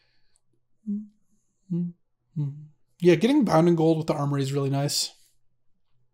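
A man speaks close to a microphone in short bursts, then with animation.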